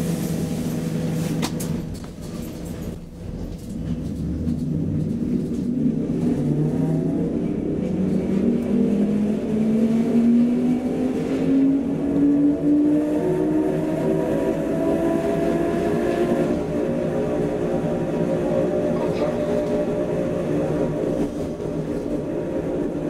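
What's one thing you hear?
A train rumbles and rattles over the tracks.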